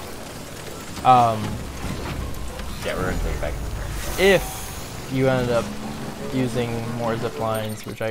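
Two young men talk with animation into microphones.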